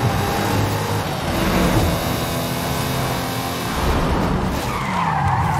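Tyres hum loudly on the road.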